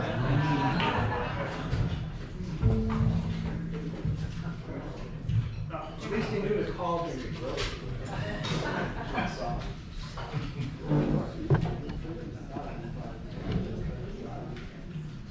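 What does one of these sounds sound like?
An upright bass is plucked in a walking line.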